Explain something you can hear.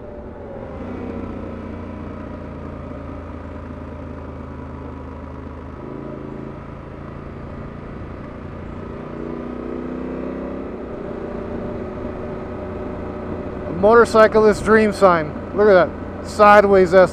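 A motorcycle engine hums steadily, its pitch shifting as it rides.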